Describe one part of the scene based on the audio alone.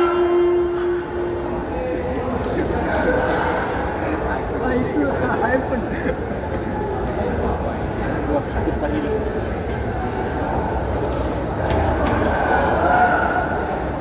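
A crowd of spectators chatters and calls out in a large echoing hall.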